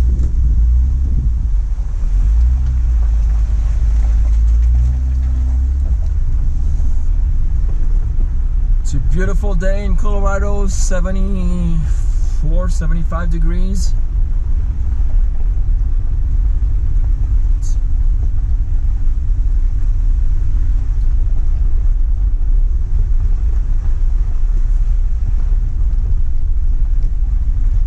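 A vehicle engine rumbles low and steady.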